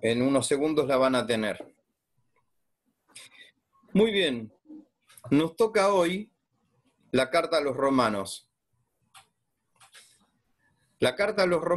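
A man talks calmly over an online call, in short phrases with pauses.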